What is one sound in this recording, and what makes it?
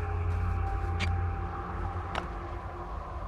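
A game menu button clicks.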